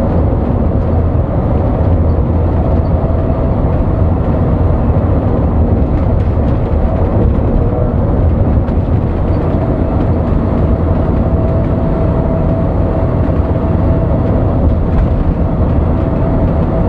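Tyres roll on the road with a constant rumble.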